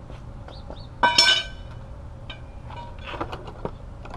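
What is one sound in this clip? Metal tools clank and rattle close by.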